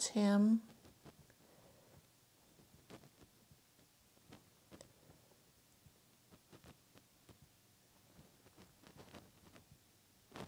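A paintbrush dabs softly on canvas.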